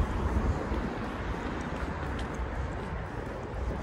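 Traffic hums steadily on a nearby street outdoors.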